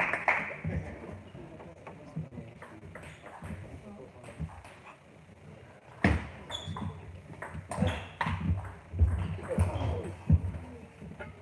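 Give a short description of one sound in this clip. A table tennis ball clicks back and forth between paddles and the table in an echoing hall.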